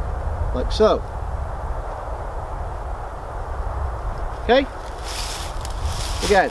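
A man blows short hooting calls through cupped hands, close by.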